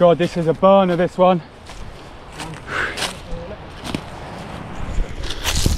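Footsteps crunch and rustle through dry leaves.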